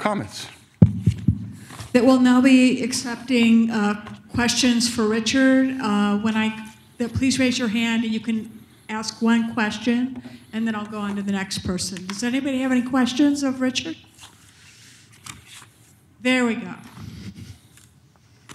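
A woman speaks over a microphone in a large room.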